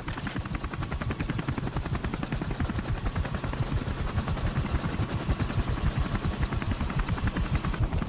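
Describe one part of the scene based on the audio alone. A helicopter's rotor thumps rapidly and steadily close by.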